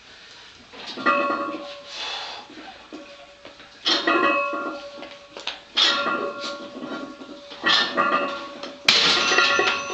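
Weight plates clink and ring as a barbell is pressed up and down.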